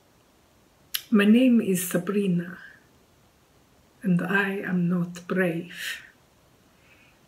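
A middle-aged woman speaks calmly and close to the microphone.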